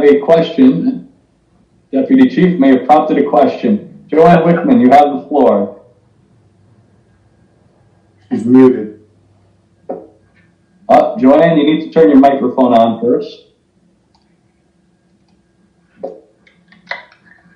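A man speaks calmly over an online call, heard through a loudspeaker.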